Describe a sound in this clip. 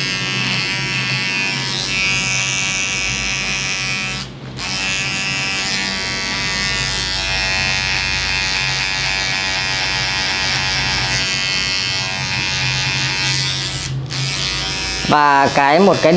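An electric hair clipper buzzes as it trims short hair.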